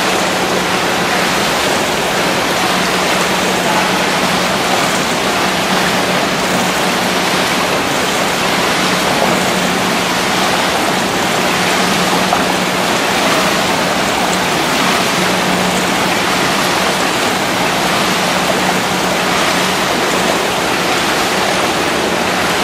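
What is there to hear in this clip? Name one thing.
Paddles splash rhythmically through water in a large echoing hall.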